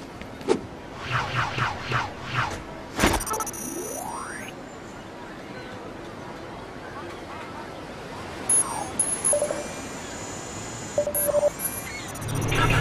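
Small coins chime as they are picked up.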